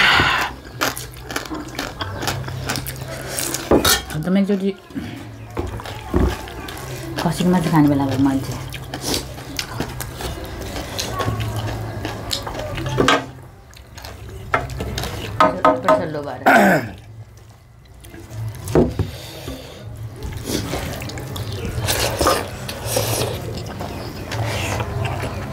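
Hands squish and scrape food on metal plates.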